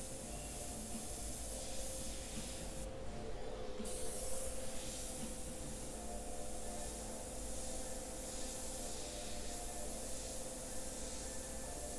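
An airbrush hisses steadily, pausing briefly.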